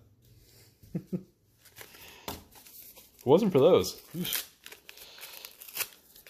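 Playing cards rustle and click as they are handled up close.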